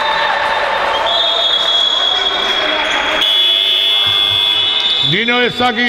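Sports shoes squeak on a hard court floor.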